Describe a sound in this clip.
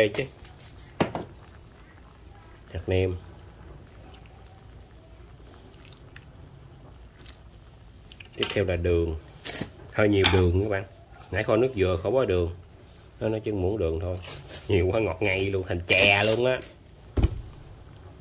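A metal ladle scrapes and clinks against a pan of soup.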